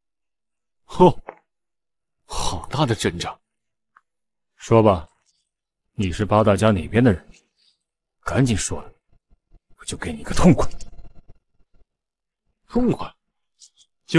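A young man speaks calmly and coolly, close by.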